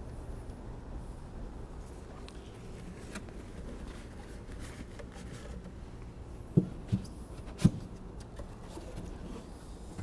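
Wooden hive boxes knock and scrape as they are lifted and set down.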